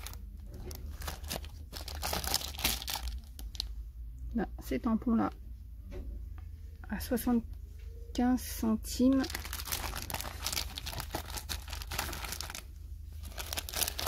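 Plastic packaging crinkles and rustles in a hand.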